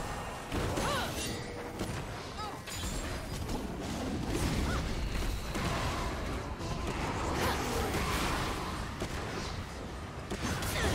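Magical spell effects whoosh, crackle and boom during a fast fight.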